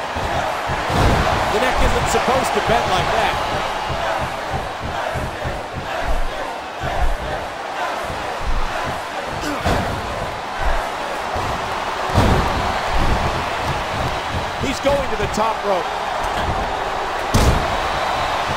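Heavy bodies slam down onto a wrestling ring with loud thuds.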